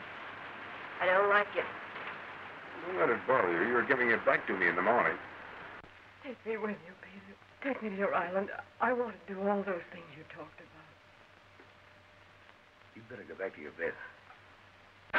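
A man speaks in an emotional voice, close by.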